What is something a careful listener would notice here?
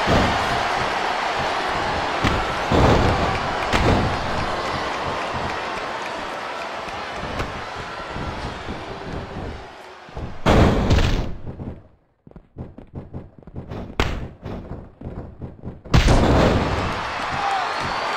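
A crowd roars and cheers in a large arena.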